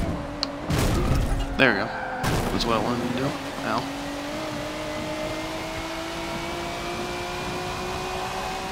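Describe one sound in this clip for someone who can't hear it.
A racing car engine roars steadily at high revs, slowly rising in pitch.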